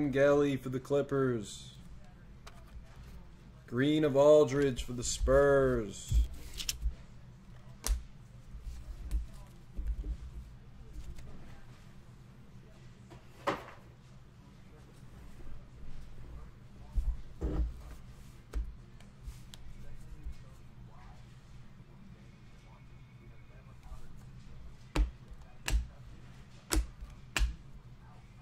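Trading cards rustle and tap as they are handled.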